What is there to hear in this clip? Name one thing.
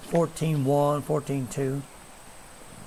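A man speaks loudly with drawn-out words.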